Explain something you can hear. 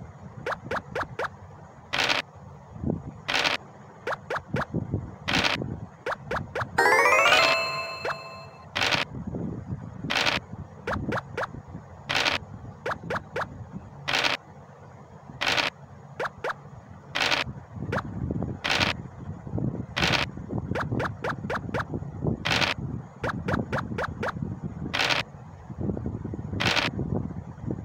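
Game dice rattle as they roll, again and again.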